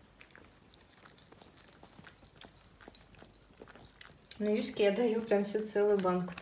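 A small dog licks and laps food from a plate.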